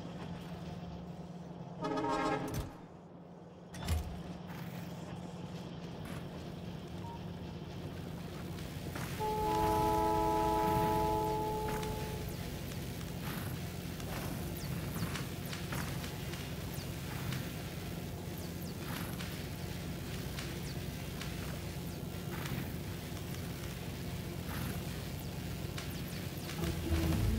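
Machines hum and clatter steadily in the background.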